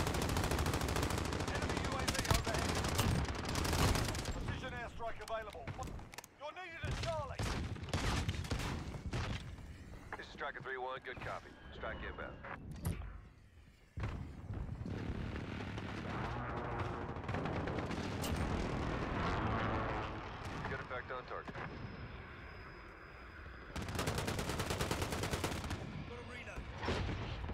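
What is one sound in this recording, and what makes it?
A rifle fires in rapid, rattling bursts.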